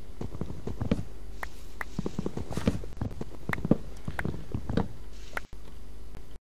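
An axe chops repeatedly into wood with dull knocks.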